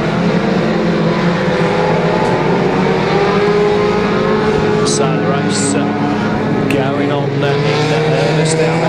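Many car engines roar and rev loudly.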